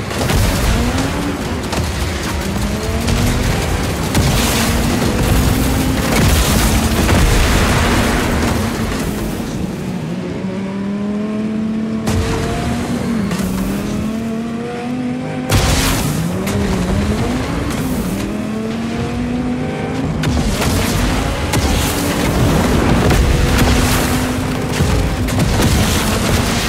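A vehicle engine roars and revs up and down throughout.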